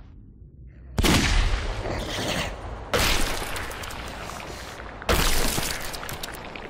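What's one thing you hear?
Heavy blasts roar out suddenly, three times, each slowly dying away.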